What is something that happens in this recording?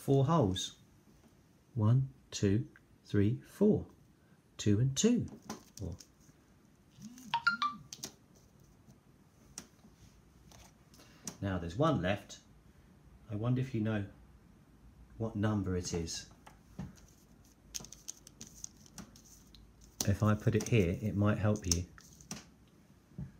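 Plastic pieces click softly as they are handled and set down on a table.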